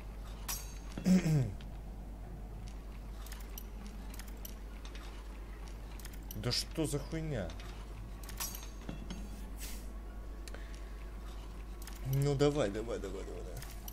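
A thin metal lockpick snaps with a short ringing twang.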